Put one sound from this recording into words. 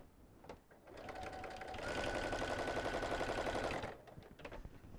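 A sewing machine whirs steadily as it stitches.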